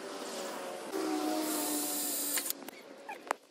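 A cordless drill whirs in short bursts.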